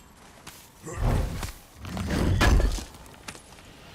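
A heavy chest lid is heaved open with a deep thud.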